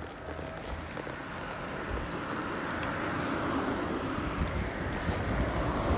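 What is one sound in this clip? A small car drives past close by.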